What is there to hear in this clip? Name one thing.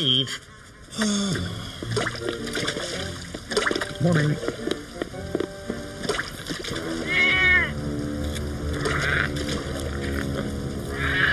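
Water splashes steadily into a fountain basin.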